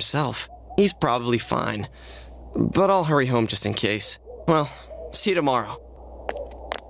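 A young man speaks casually and cheerfully.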